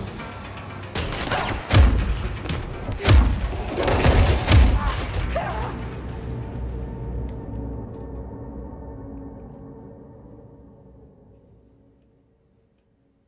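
Loud gunshots boom and echo, then fade away.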